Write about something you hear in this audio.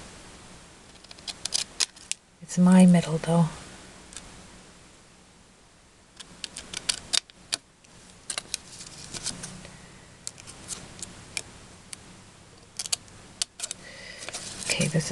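Paper rustles and taps as a card is handled close by.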